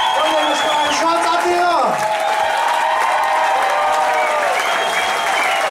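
A crowd cheers loudly in a large echoing hall.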